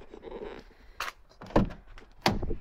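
A car door handle clicks.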